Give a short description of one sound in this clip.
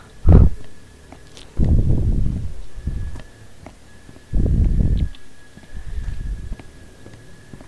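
A young man talks close to a headset microphone, with animation.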